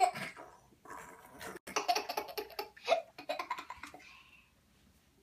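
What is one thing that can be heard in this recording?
A toddler laughs close by.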